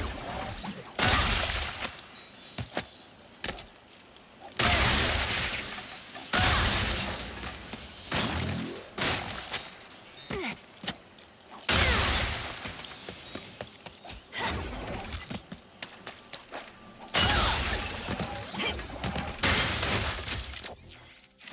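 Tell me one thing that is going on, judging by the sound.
Loud explosions boom one after another.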